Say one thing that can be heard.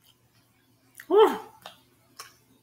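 A woman hums briefly with her mouth closed.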